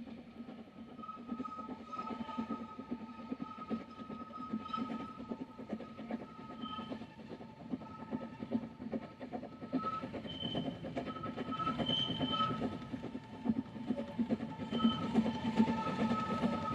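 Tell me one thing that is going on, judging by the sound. A train's wheels squeal and clatter on the rails.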